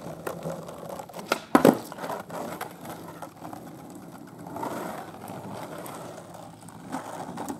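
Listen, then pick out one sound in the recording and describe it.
Skateboard wheels roll and rumble over rough asphalt.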